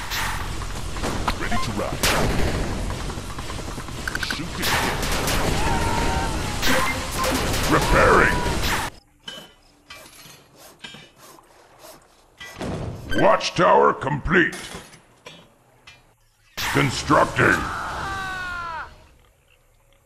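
Rapid gunfire and zapping energy blasts crackle in a battle.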